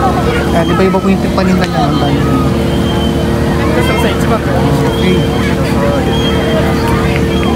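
Many people chatter and call out in the distance outdoors.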